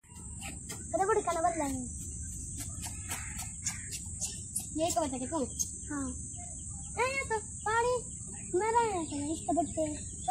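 A young boy calls out excitedly nearby.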